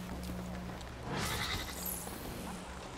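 Bright energy crackles and whooshes in a burst.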